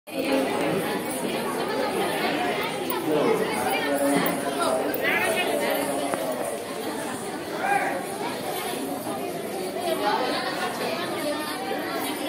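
A crowd of people talks and calls out loudly in a busy, echoing hall.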